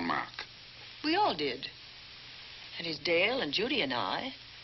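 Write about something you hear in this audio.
An older woman speaks with feeling.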